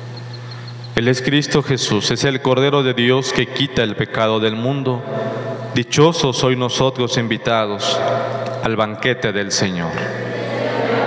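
A man chants through a microphone.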